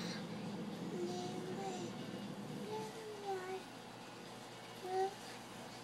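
A toddler babbles in a high voice close by.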